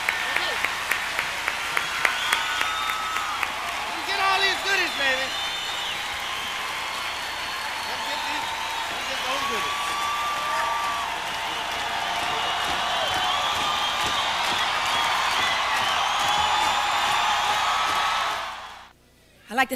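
A large audience applauds and cheers loudly.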